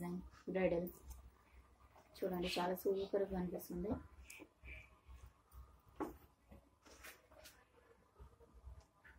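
Cloth rustles as hands handle it.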